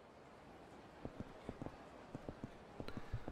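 Footsteps tap lightly on hard pavement.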